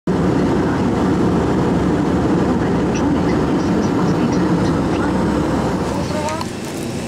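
Jet engines roar steadily, heard from inside an aircraft cabin.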